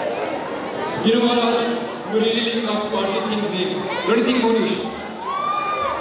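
A crowd sings along loudly in unison.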